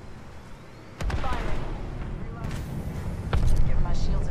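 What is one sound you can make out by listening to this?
A sniper rifle fires a loud, booming shot.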